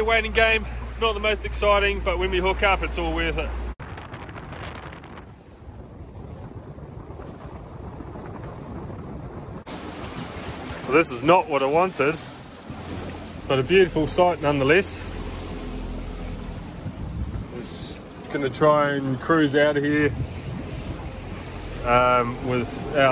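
Water rushes and splashes against a moving boat.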